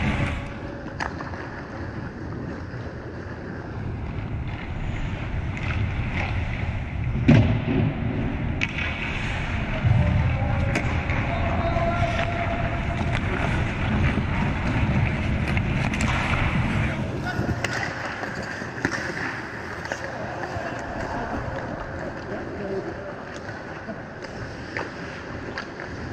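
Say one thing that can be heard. Pucks and sticks clack sharply on the ice.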